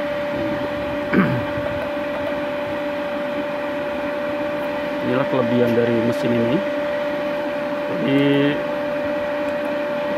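A finger clicks buttons on a control panel.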